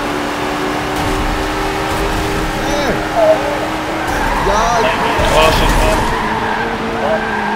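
A car crashes hard into a wall with loud scraping and bangs.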